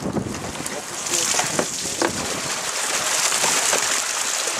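Fish flap and splash in a net.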